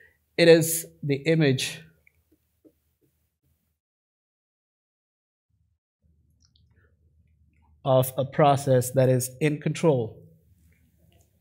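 A man speaks calmly into a headset microphone, pausing between phrases.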